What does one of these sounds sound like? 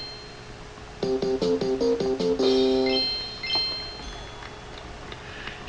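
A short cheerful game tune plays as a level is completed.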